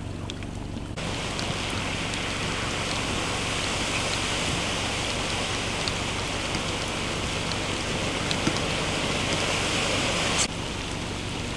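A work truck ploughs through deep floodwater, spraying water aside.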